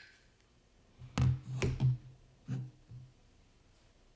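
A plastic blade knocks and clicks as it slides out of a metal hilt.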